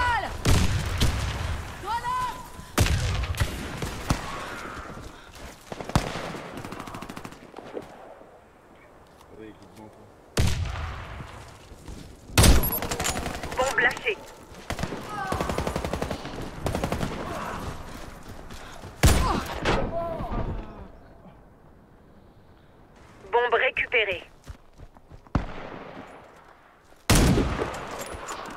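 Gunshots crack loudly with echoes.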